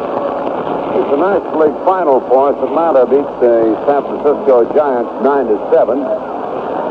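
A man commentates with animation, heard through an old radio broadcast.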